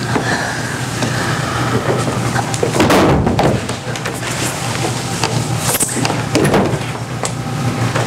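Bare feet shuffle and thump on a wooden stage.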